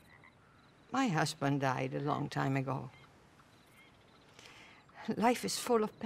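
An elderly woman speaks calmly, close by.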